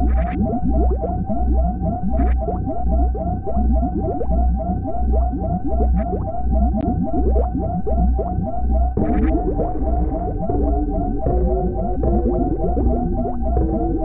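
A retro video game's enemy fire chirps rapidly and repeatedly.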